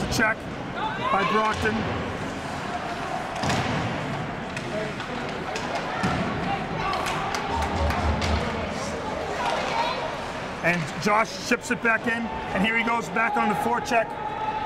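Skates scrape and glide on ice.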